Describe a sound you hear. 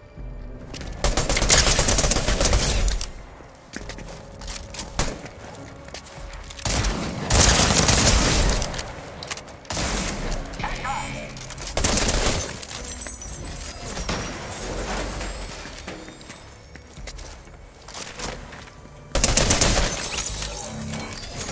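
Gunshots fire in loud, rapid bursts.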